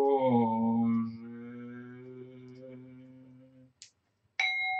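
A metal bowl rings with a long, slowly fading tone.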